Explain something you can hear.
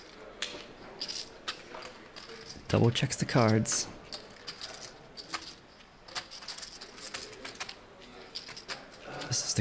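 Poker chips click together on a table.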